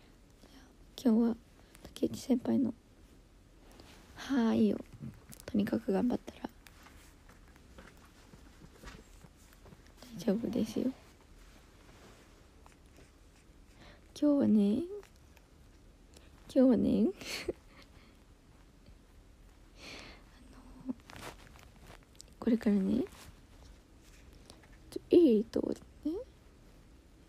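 A young woman speaks softly in short bursts, close to a microphone.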